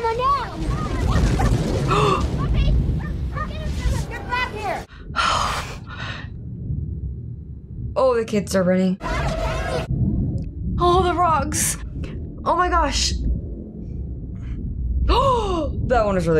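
Thunder rumbles and wind roars loudly.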